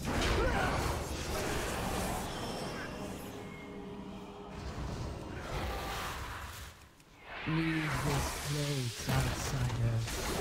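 Magic spells whoosh and burst during a battle.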